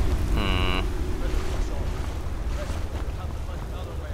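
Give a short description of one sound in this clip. Water rushes and splashes nearby.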